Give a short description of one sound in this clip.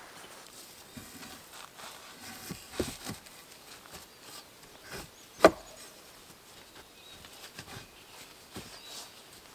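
Wooden poles knock and rub together as they are set in place.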